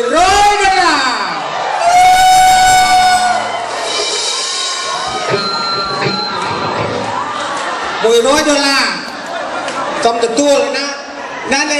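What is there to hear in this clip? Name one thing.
A live band plays music with guitars and drums.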